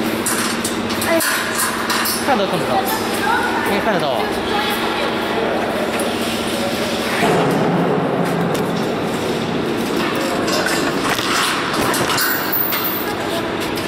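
Metal springs clink and rattle against each other.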